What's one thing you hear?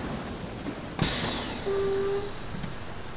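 Bus doors hiss open with a burst of air.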